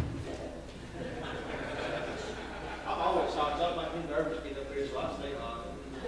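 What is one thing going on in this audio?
A middle-aged man speaks cheerfully at a distance.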